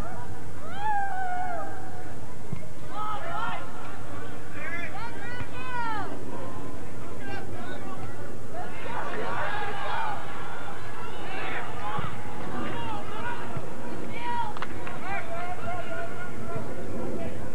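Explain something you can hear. Young men shout and call out across an open field outdoors.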